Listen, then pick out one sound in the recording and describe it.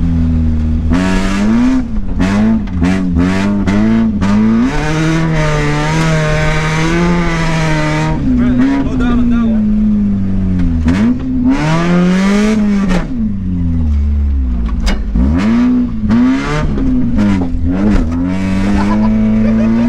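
Gravel sprays and rattles against the underside of a car.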